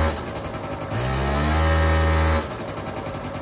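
An electric scooter's motor whirs briefly, rising in pitch.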